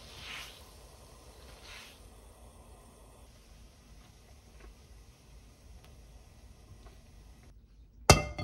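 Water bubbles at a boil in a pan.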